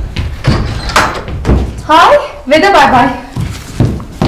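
A young woman exclaims excitedly close by.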